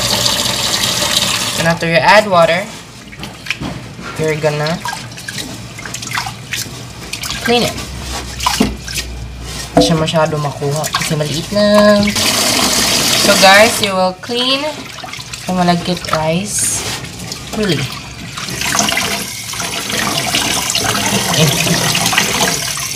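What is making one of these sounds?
Tap water pours and splashes into a pot of water.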